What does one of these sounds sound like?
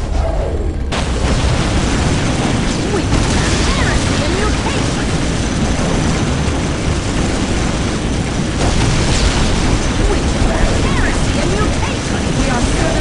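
Explosions boom.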